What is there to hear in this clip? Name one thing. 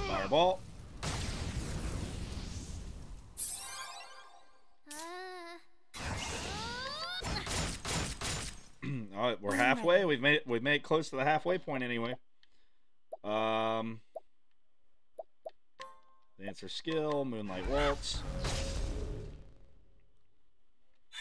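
Game battle effects whoosh and crash.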